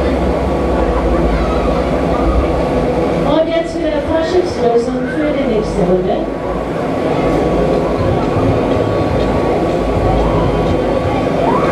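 A fairground ride whirs and rumbles as it spins.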